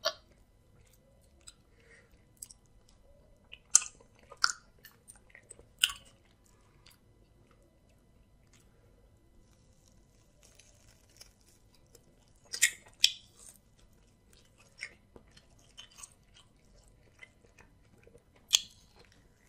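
A man chews and smacks his lips loudly up close.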